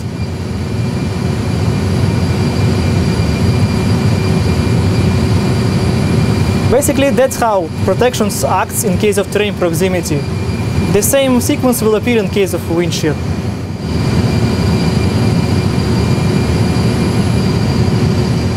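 A steady low engine hum drones throughout.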